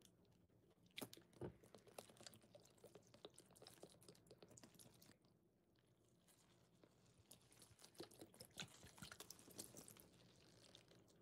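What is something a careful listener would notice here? Thick liquid soap pours and splashes onto sponges, crackling and fizzing.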